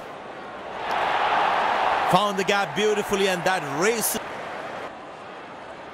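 A stadium crowd cheers loudly.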